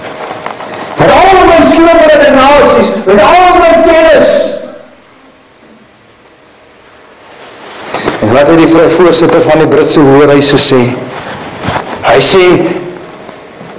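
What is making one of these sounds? A middle-aged man speaks with animation into a microphone, heard through loudspeakers in a large echoing hall.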